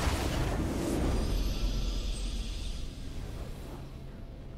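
A triumphant musical fanfare swells and fades.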